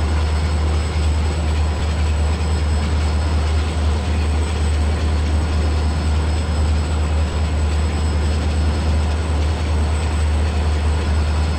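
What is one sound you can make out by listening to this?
A diesel locomotive's engine drones steadily.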